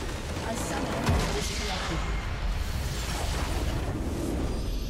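A large structure explodes with a deep rumbling boom.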